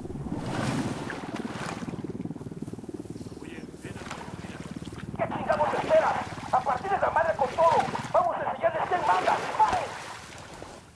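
Water sloshes and splashes as a person wades and swims through it.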